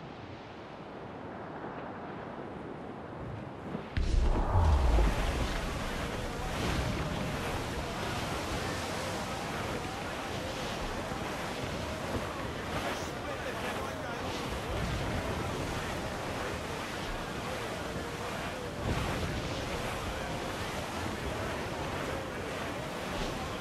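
Waves rush and splash against a moving ship's hull.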